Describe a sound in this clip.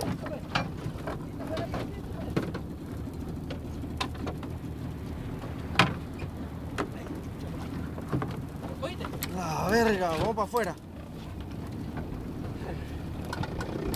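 Water laps and splashes against a small boat's hull, outdoors in wind.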